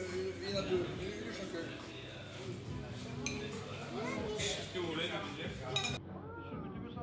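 People chat in a busy room.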